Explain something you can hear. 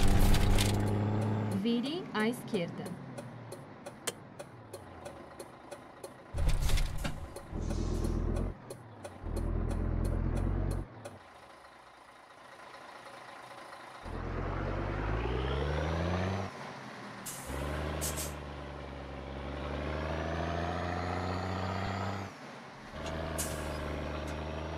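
A truck engine rumbles and revs up and down.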